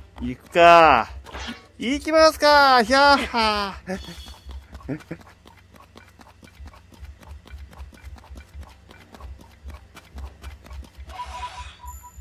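Quick footsteps patter over grass.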